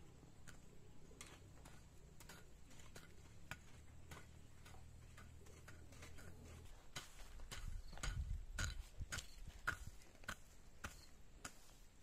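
A hoe chops into dry soil in repeated strikes.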